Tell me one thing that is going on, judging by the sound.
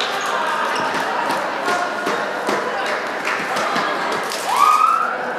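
Sneakers squeak and thump on a wooden court.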